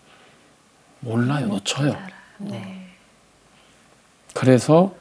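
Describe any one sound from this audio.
A middle-aged man speaks calmly and expressively into a microphone.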